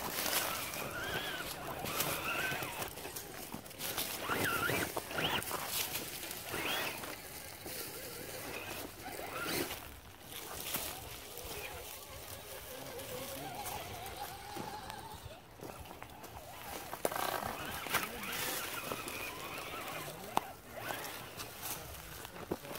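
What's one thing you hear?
Dry leaves crunch and rustle under small tyres.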